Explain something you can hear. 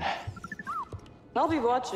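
A small robot chirps and beeps.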